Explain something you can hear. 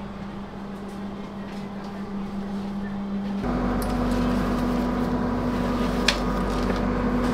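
A train carriage hums steadily with a low rumble.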